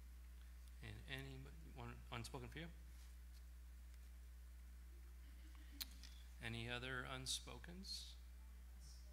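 A middle-aged man speaks calmly into a microphone in short phrases.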